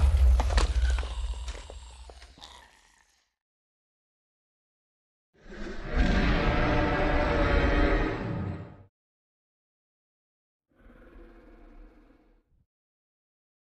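A large creature roars loudly in long, rumbling bursts.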